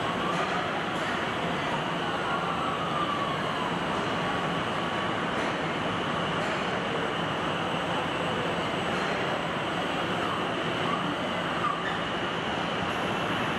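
A robotic arm whirs as it swings.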